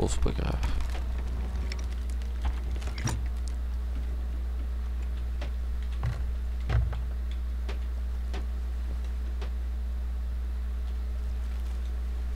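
Waves lap gently against a wooden ship.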